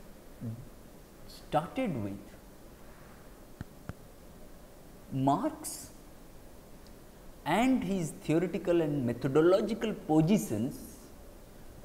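A man speaks calmly and steadily, close to a microphone, with pauses between phrases.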